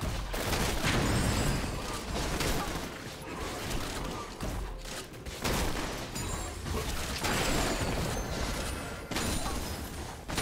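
Magic spells whoosh and crackle in a fast fight.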